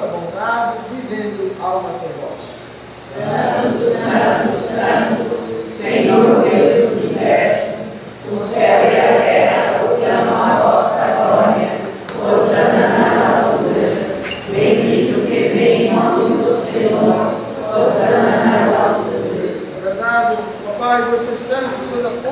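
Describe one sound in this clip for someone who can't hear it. A man sings and chants in a slightly echoing room.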